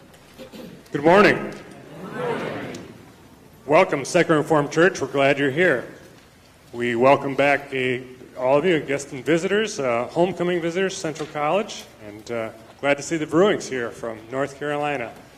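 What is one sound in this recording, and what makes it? A man speaks calmly into a microphone, heard through loudspeakers in a reverberant hall.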